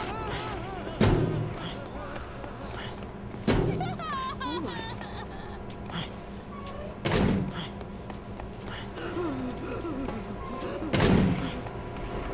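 A heavy door bangs open several times.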